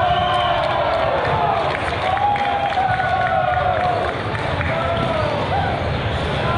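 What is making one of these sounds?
A crowd of young people talk and call out in a large echoing hall.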